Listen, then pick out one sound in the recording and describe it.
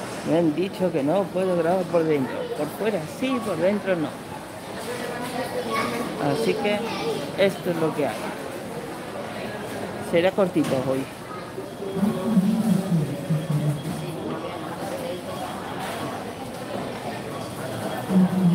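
A shopping cart rolls across a smooth floor in a large echoing hall.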